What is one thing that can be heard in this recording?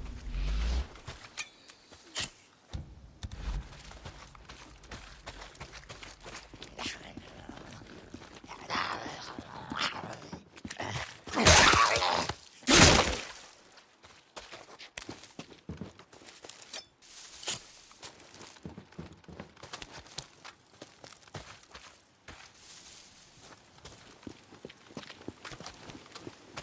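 Footsteps crunch over dry grass and dirt.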